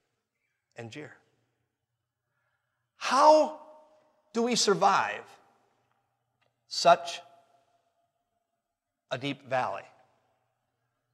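A man speaks with animation into a microphone, in short bursts with pauses, in a reverberant hall.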